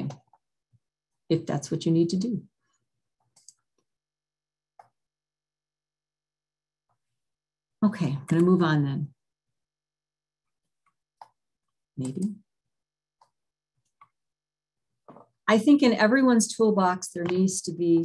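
An elderly woman speaks calmly over an online call, with pauses.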